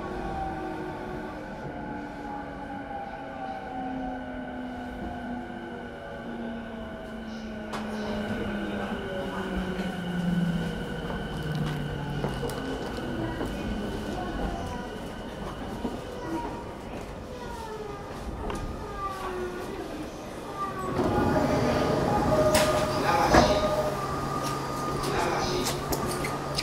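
An electric train hums steadily while standing at a platform.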